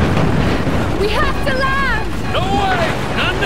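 A young woman cries out in protest.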